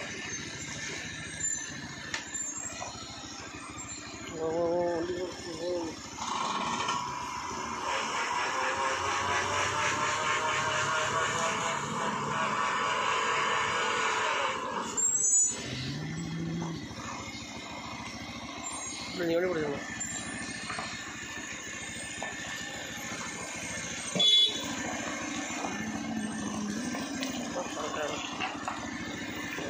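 A heavy truck engine labours and rumbles close by.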